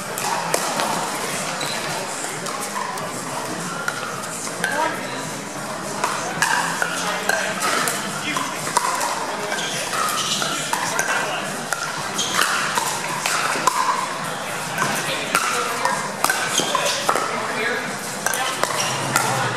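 Paddles pop sharply against a plastic ball in a quick rally.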